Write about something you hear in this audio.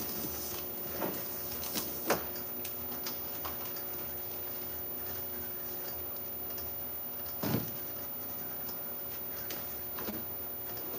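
Plastic containers knock and clatter now and then.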